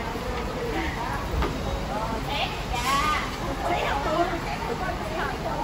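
Women talk with animation close by.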